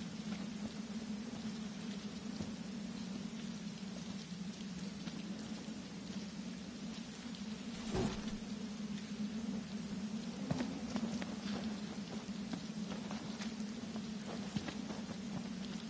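Footsteps shuffle on a paved road.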